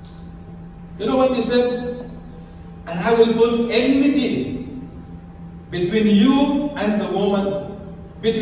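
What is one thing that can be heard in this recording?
A man speaks calmly through a microphone and loudspeakers, like a preacher.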